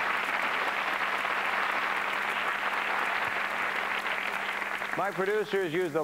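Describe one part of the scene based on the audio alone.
An audience laughs and claps loudly.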